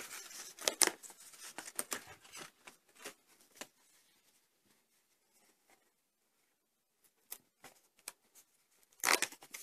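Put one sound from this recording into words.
Stiff paper tears and peels as hands pull at a sticker sheet.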